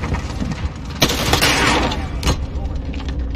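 Automatic rifle gunfire rattles in rapid bursts.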